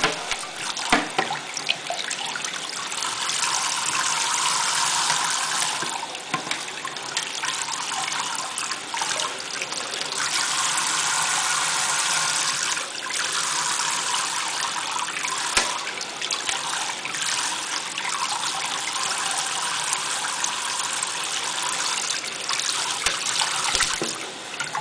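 A parrot flaps its wet wings, splashing water.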